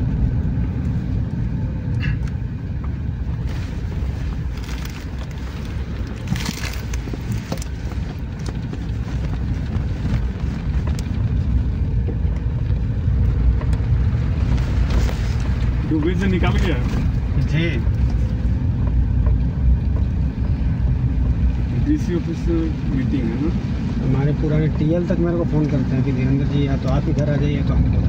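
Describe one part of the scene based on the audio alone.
Tyres crunch and rattle over loose gravel and stones.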